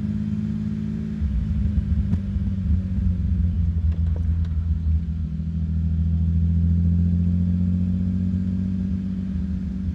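A car engine rumbles steadily as the car drives along.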